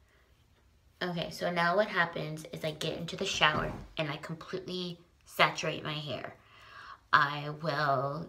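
A young woman talks with animation, close to the microphone.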